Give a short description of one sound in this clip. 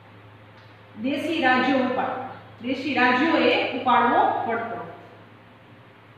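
A young woman speaks calmly and clearly, as if explaining.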